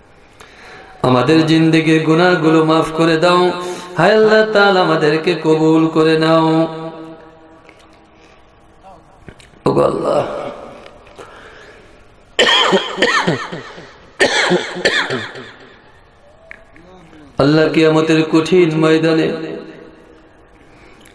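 A young man chants in a long, melodic voice into a microphone, heard through loudspeakers with an echo.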